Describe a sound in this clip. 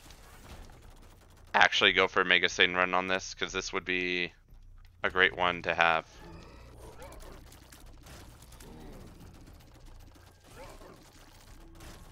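A video game laser beam fires with a roaring whoosh.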